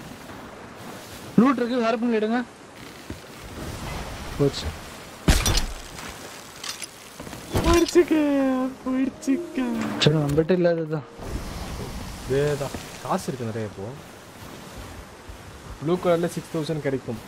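Ocean waves surge and crash.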